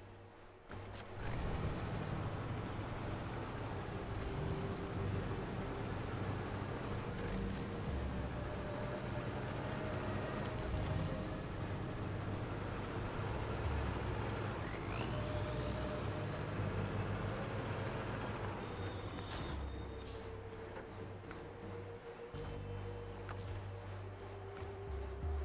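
A truck engine rumbles steadily as the truck drives over rough ground.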